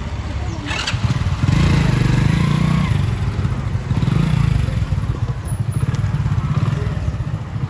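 A motorcycle engine starts and idles with a steady, throbbing rumble close by.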